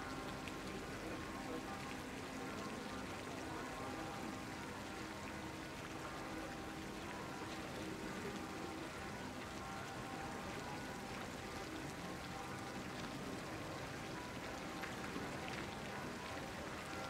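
Water from a fountain splashes steadily into a pond.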